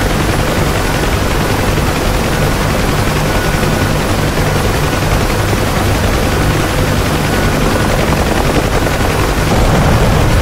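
A helicopter engine and rotor thump loudly and steadily from inside the cabin.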